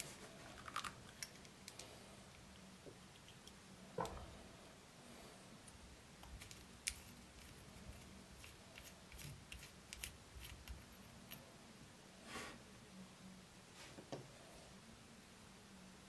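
Small metal parts click and scrape together as they are turned by hand.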